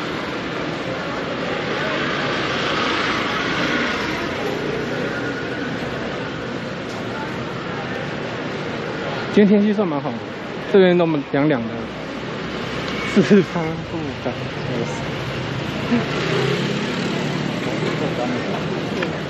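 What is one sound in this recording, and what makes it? A steady murmur of street bustle fills the air outdoors.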